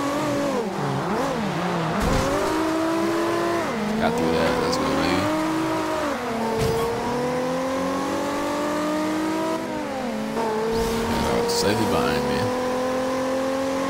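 A sports car engine revs hard, rising and dropping in pitch as it shifts gears.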